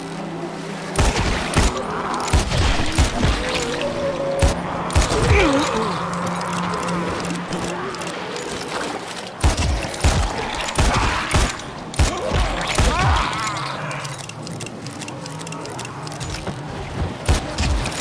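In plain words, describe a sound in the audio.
Revolver shots fire in quick bursts, loud and sharp.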